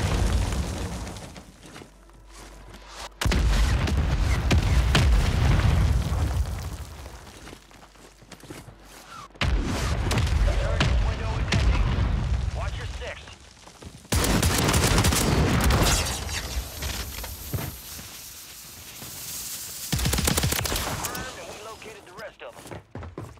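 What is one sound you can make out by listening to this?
Explosions boom loudly and rumble away.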